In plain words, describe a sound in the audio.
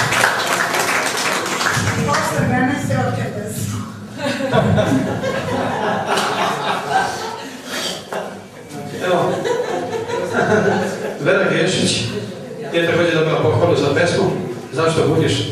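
A middle-aged man speaks with animation into a microphone, heard through loudspeakers in a room.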